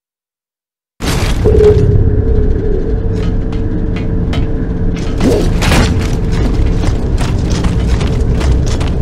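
Heavy armoured footsteps thud and clank on a hard floor.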